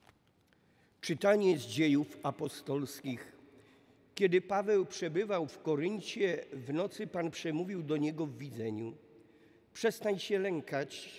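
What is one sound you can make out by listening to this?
An elderly man reads out calmly through a microphone in a large echoing hall.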